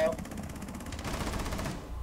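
Rapid gunshots fire at close range.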